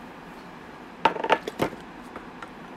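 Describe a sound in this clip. A plastic bottle is set down on a hard surface with a few knocks.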